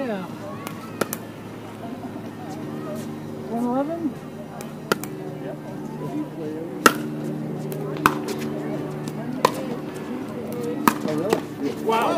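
Paddles smack a plastic ball back and forth with sharp pops.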